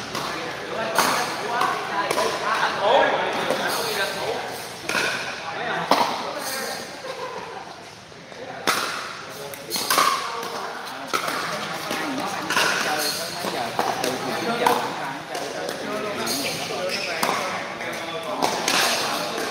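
Paddles strike a plastic ball with sharp pops, echoing in a large hall.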